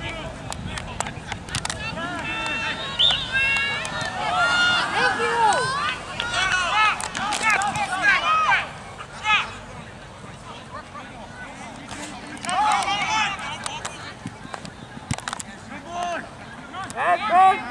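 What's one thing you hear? Young men and spectators shout and call out across an open field.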